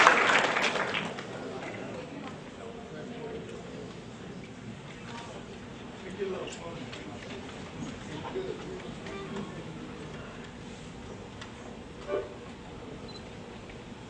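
An accordion plays a soft, slow melody.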